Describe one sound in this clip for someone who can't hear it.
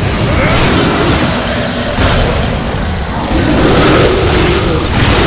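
Fiery explosions roar and crackle.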